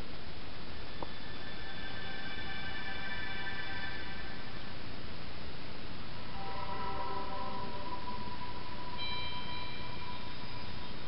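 Chiming tones play from a television speaker.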